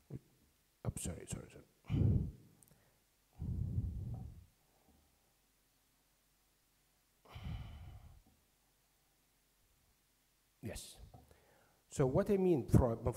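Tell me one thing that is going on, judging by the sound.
A man speaks slowly into a microphone, heard through loudspeakers in a large echoing hall, with long pauses.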